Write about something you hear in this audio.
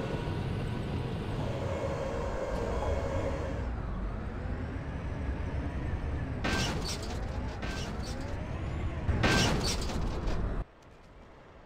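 A tank engine rumbles deeply and steadily.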